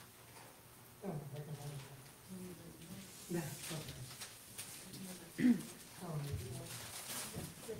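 A man speaks into a microphone in a large echoing room.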